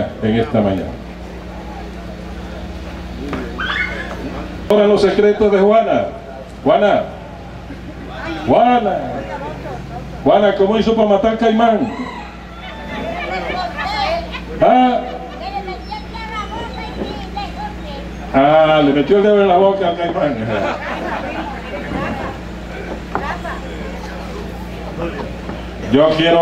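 A man speaks outdoors through a microphone and loudspeakers, in short phrases with pauses.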